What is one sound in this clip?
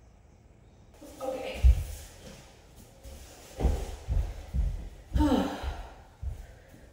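A young woman laughs and talks nearby in an echoing empty room.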